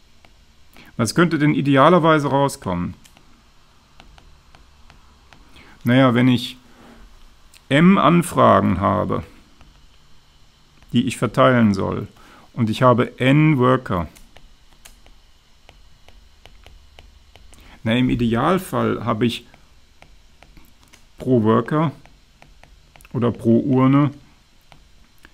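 A man lectures calmly into a close microphone, in short bursts with pauses.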